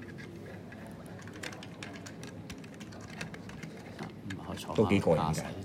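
Small plastic parts click and snap together.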